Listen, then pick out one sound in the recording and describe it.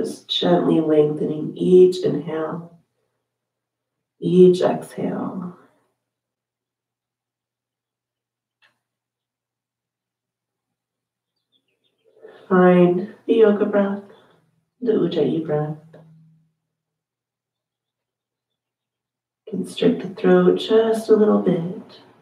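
A woman speaks calmly and slowly, with long pauses.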